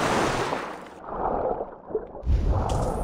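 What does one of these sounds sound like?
Water churns in a dull, muffled way as a swimmer dives.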